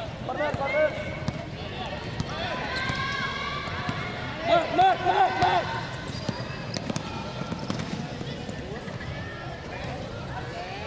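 Spectators chatter and cheer in a large echoing hall.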